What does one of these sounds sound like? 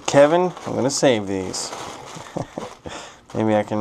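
Plastic air-cushion packing crinkles and rustles in hands.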